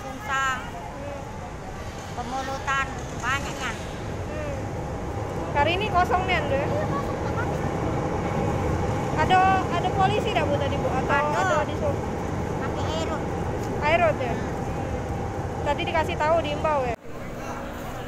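An elderly woman speaks close up, talking steadily.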